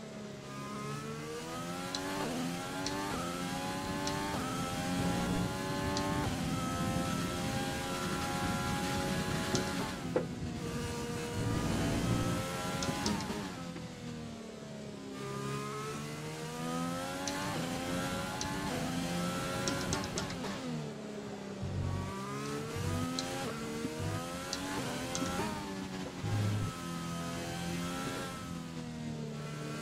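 A racing car engine revs high and drops as the gears shift.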